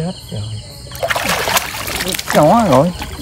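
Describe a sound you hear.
Water splashes as a basket is swept through it.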